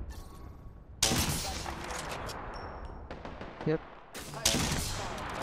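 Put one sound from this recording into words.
A sniper rifle fires loud booming shots that echo away.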